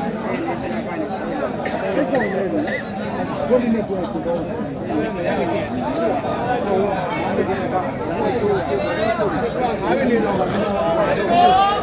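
A large crowd of men chatters and shouts loudly outdoors.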